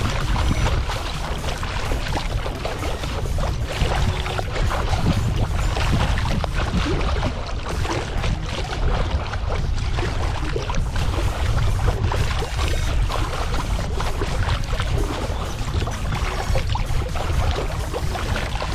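Water splashes and laps against the hull of a moving kayak.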